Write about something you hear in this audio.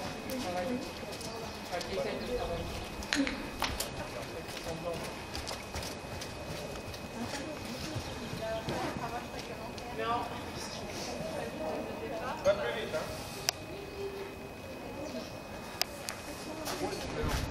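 Men and women talk quietly nearby, outdoors.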